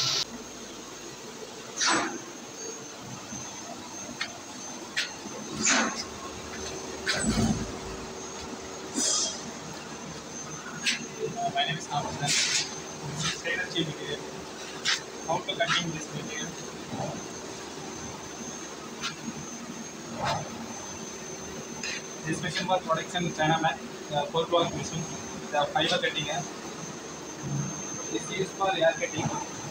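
A machine hums steadily in the background.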